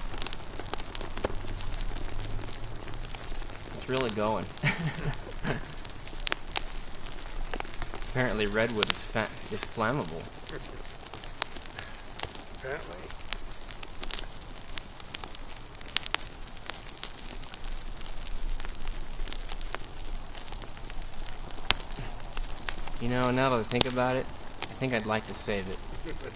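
Burning wood crackles and pops sharply.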